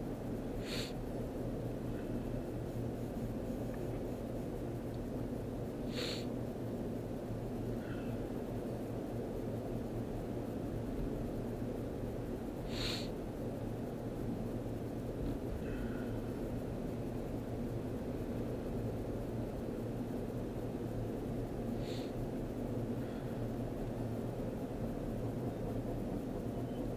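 Traffic rushes past on a busy highway.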